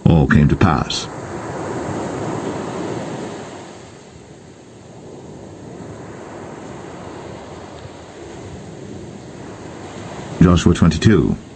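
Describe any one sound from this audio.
Waves wash onto a pebble beach.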